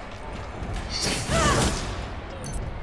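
A blade whooshes through the air with a loud magical burst.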